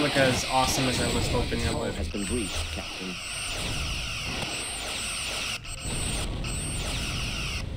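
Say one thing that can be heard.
A laser weapon fires with a sharp zapping hum.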